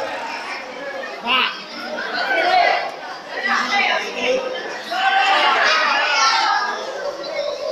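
A crowd of young men and women chatter and shout nearby.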